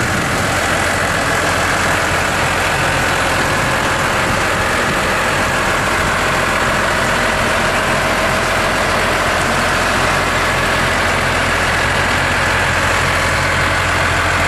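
A tractor engine idles steadily close by.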